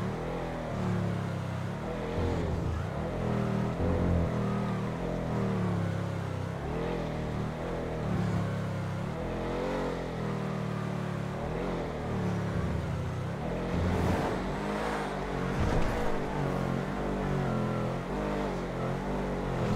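A car engine hums and revs up and down as the car drives fast.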